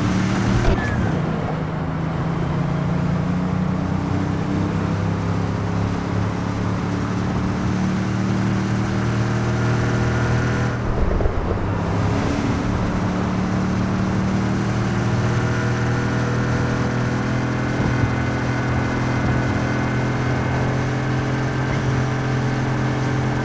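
Tyres roll and hiss on the road.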